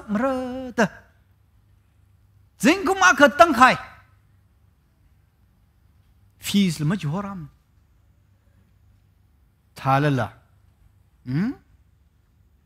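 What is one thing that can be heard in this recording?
A middle-aged man speaks expressively through a headset microphone, in short phrases with pauses.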